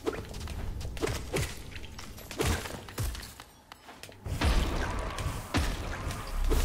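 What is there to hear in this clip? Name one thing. A sword swishes and slashes in quick strikes.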